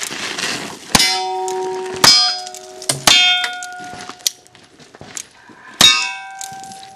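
A revolver fires loud single shots outdoors.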